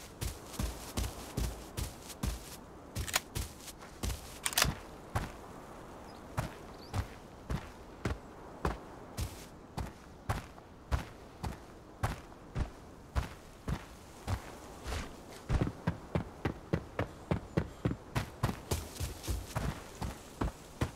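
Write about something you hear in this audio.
Footsteps thud steadily at a running pace.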